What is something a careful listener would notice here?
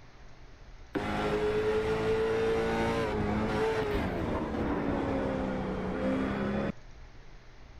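A race car engine roars steadily as the car drives.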